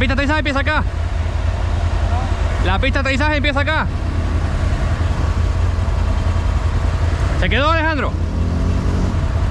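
An all-terrain vehicle engine idles with a low rumble.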